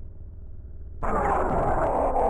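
Lightsaber blades clash and sizzle with a crackling noise.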